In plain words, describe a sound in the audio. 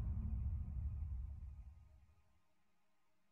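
A magic blast rumbles low and fades away.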